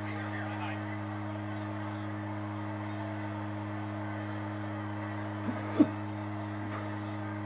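A crowd cheers faintly through a television speaker.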